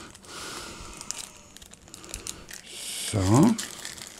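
Plastic wrapping crinkles and rustles.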